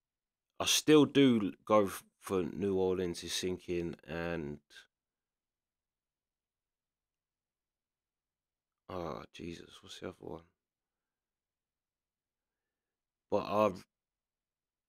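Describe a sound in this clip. A man talks calmly and closely into a microphone, with pauses.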